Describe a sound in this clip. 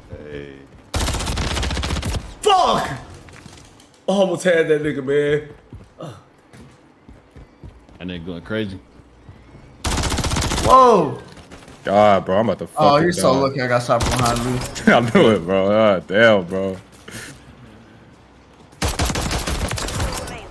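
Rapid gunfire bursts in loud stretches.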